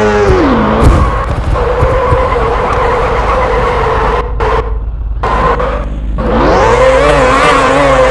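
A motorcycle engine idles steadily, then revs up again.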